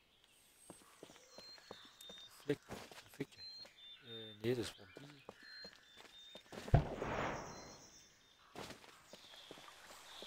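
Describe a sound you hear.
Light footsteps patter quickly over soft ground.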